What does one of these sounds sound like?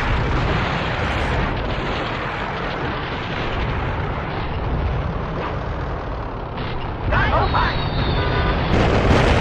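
A heavy armoured truck engine rumbles steadily as the truck drives along.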